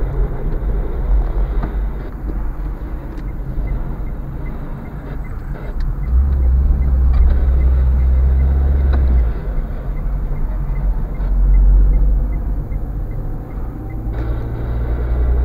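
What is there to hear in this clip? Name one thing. A car engine hums steadily from inside the cabin as the car drives along.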